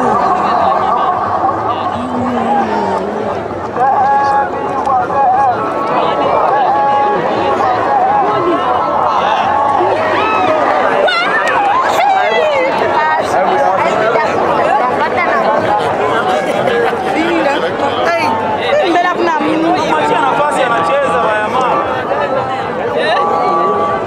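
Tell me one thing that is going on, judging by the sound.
A large crowd shouts and cheers loudly outdoors.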